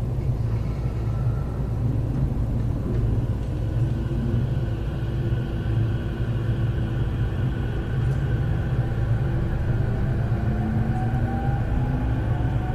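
An electric commuter train rumbles along the rails.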